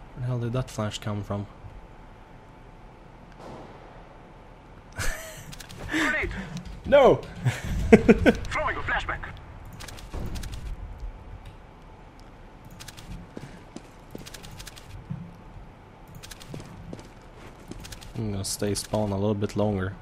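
Footsteps tap on stone.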